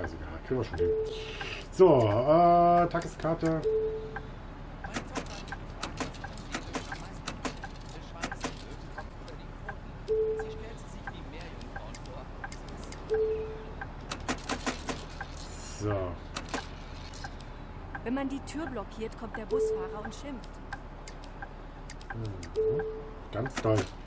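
A ticket machine gives short electronic beeps.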